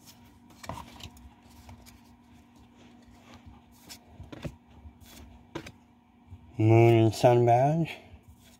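Playing cards slide and flick softly against each other.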